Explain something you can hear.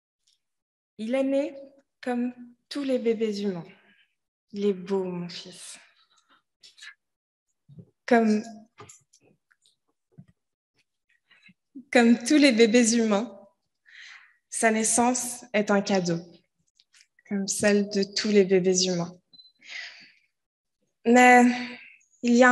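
A woman speaks with expression through a microphone in an echoing hall.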